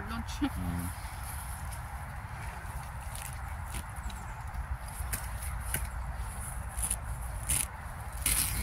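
A horse tears and munches grass close by.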